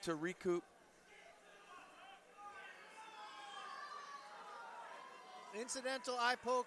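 A crowd cheers and murmurs in a large hall.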